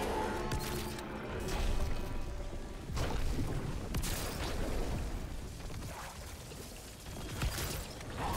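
A gun fires in bursts.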